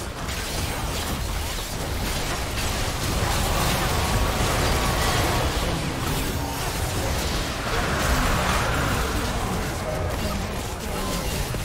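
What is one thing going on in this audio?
Magic spells crackle and burst during a fast game battle.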